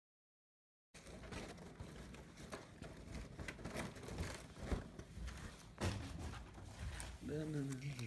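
Objects rustle and clatter close by.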